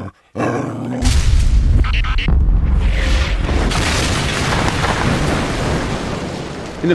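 An explosion booms and rumbles outdoors.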